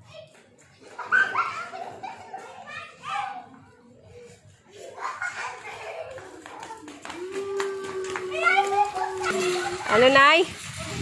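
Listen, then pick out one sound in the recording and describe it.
Young children shout and call out nearby, outdoors.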